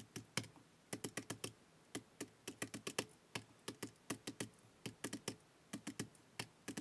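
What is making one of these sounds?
A pen taps quickly on calculator keys, clicking.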